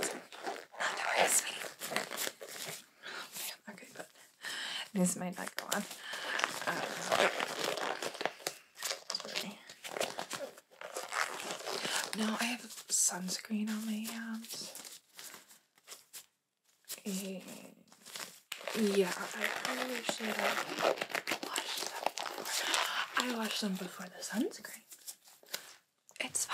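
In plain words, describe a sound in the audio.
A young woman speaks softly and slowly, close to a microphone.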